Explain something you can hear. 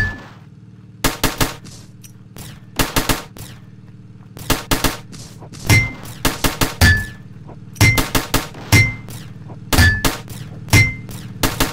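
Game guns fire in quick bursts of sharp shots.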